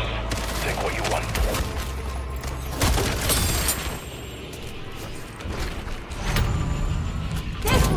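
A magical portal hums and whooshes.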